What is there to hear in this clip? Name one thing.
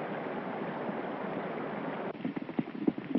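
Water rushes and splashes around a boat.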